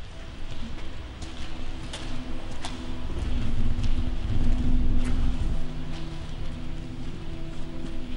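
Footsteps scuff on a gritty floor.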